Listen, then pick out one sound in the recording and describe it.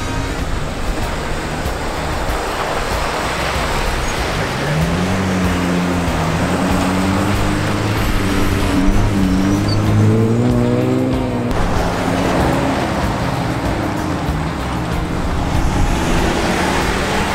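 Off-road vehicle engines rumble and rev nearby.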